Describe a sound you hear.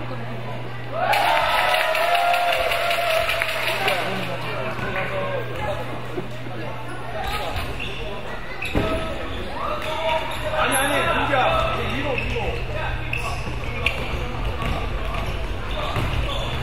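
Spectators shout and cheer.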